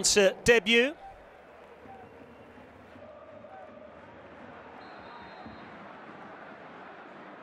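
A large stadium crowd murmurs steadily in the distance.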